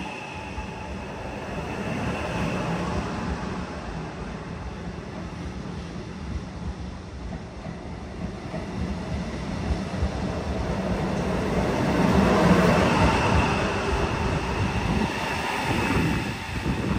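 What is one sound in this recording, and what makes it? A train rolls slowly past with a low rumble.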